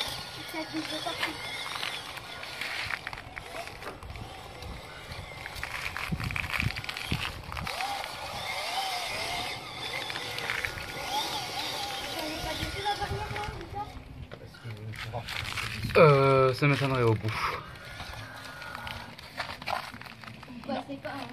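Small electric motors whine as toy trucks drive.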